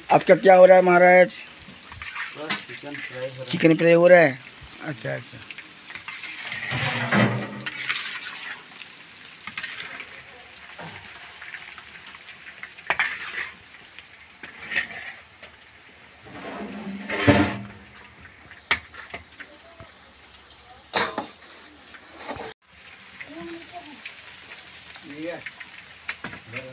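Hot oil sizzles in a pan.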